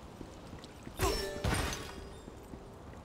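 A magic spell whooshes and chimes.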